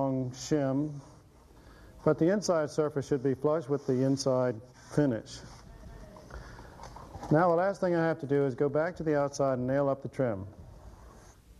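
A middle-aged man speaks calmly and clearly, close to a microphone.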